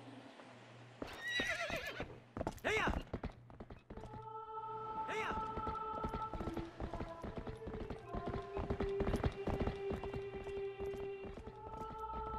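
A horse gallops with pounding hooves.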